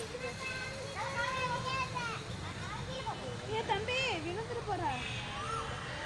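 A young child babbles and chatters close by.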